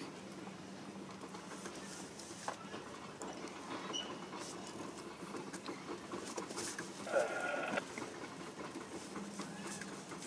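A freight train rumbles along steadily in the distance.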